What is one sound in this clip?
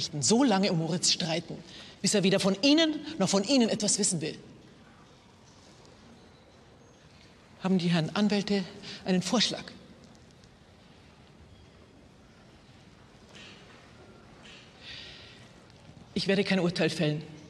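A middle-aged woman speaks firmly and clearly.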